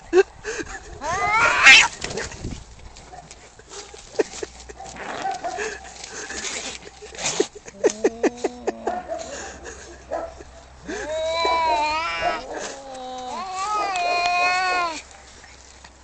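Two cats yowl and growl at each other.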